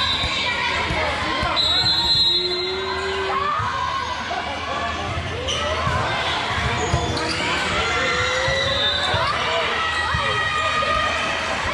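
Sneakers squeak on a sports floor.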